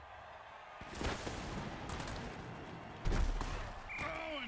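Heavy bodies crash together in a tackle with loud thuds.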